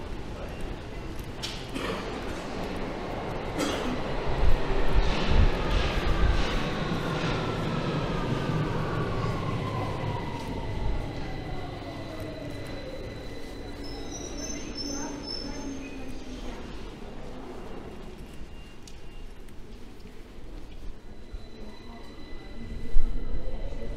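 Footsteps echo along a tiled underground passage.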